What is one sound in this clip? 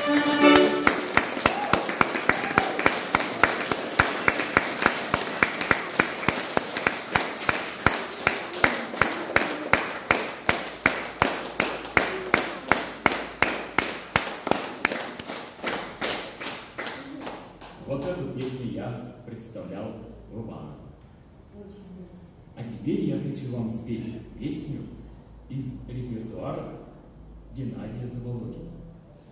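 An accordion plays a lively tune in an echoing room.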